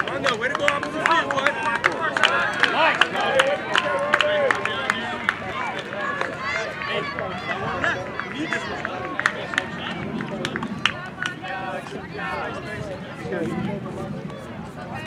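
Many voices of young players and adults chatter and call out outdoors.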